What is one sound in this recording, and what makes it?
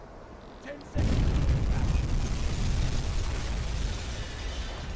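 A deep explosion booms and rumbles on.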